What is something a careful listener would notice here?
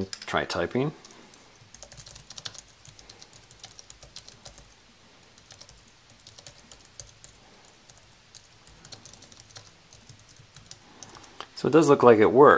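Keys clack quickly and lightly on a keyboard.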